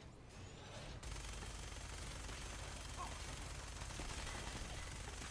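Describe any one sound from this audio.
A minigun fires a rapid burst.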